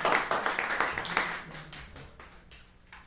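A guitar string is plucked as it is tuned.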